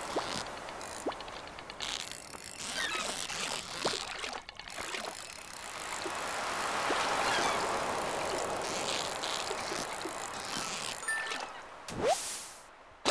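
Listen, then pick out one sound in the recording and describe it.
A fishing reel whirs as a fish is reeled in.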